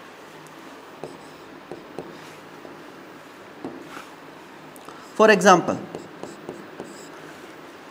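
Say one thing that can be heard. A pen taps and scratches on a board.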